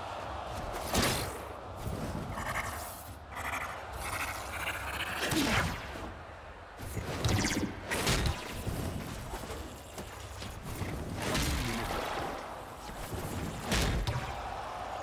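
Heavy game impacts thud now and then.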